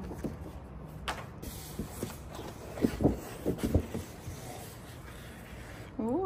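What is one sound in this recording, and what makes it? A cardboard box lid knocks and scrapes as it is lifted.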